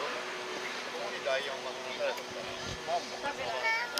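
Women and children talk quietly nearby outdoors.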